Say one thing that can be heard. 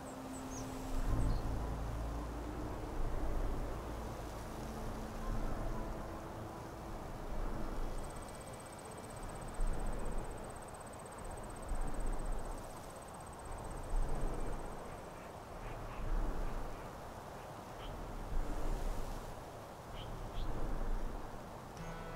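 Strong wind gusts and roars outdoors, swelling every couple of seconds.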